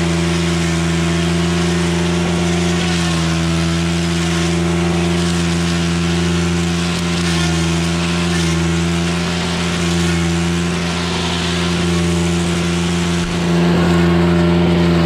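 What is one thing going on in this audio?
A string trimmer engine drones loudly and steadily up close.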